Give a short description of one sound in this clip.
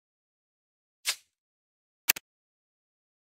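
Short game clicks and pings sound.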